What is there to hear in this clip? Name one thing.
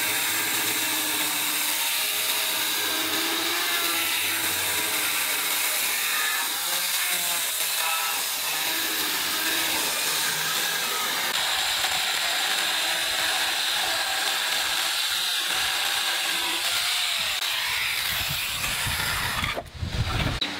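An electric chainsaw whines loudly as it cuts through wood.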